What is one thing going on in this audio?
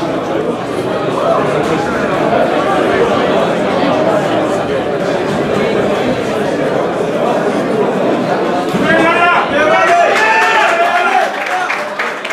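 A man speaks firmly up close.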